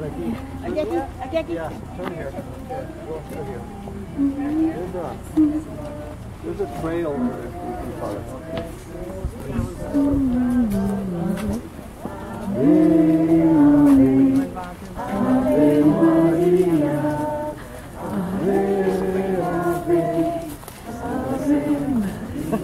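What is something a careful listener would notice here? A crowd of men and women sings a hymn together outdoors.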